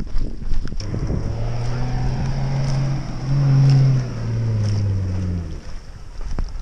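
A vehicle's engine drones and revs on sand.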